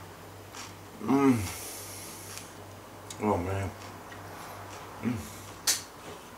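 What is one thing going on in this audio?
A man hums with pleasure while chewing.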